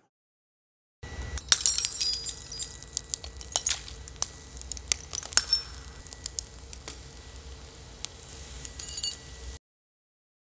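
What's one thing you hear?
Wine glasses shatter, and shards scatter and tinkle across a hard surface.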